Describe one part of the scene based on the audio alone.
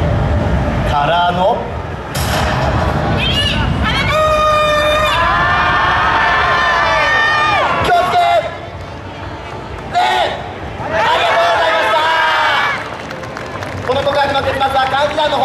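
A group of young women chant and shout loudly outdoors.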